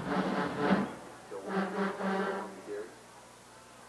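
A brass band plays loudly.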